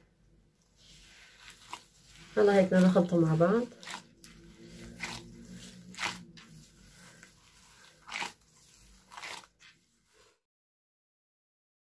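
Gloved hands squish and knead soft dough in a bowl.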